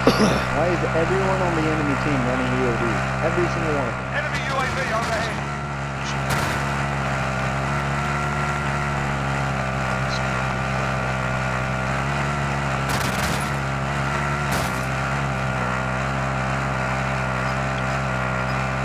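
A vehicle engine drones steadily while driving.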